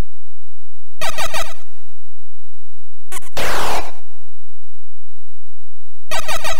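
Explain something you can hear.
Harsh electronic game bleeps sound in short bursts.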